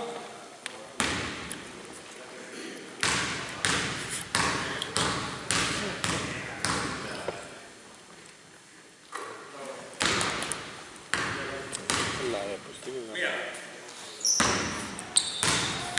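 A basketball bounces on a hard court floor with sharp echoing thumps.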